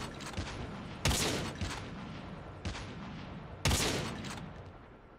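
A sniper rifle fires sharp, booming shots that echo away.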